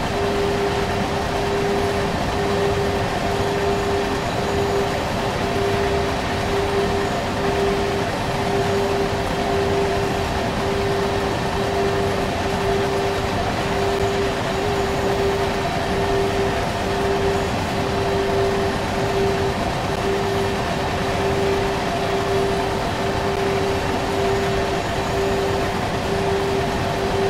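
An electric locomotive's motor hums with a steady, gently pulsing tone.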